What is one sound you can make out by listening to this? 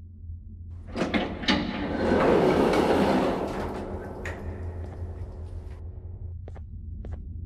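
Heavy double doors slide open with a loud rushing sound.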